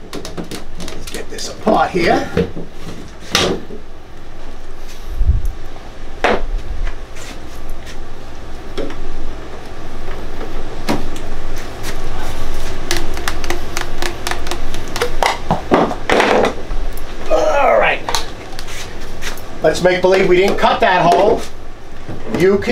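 Plastic pipes knock and clatter as they are fitted and pulled apart.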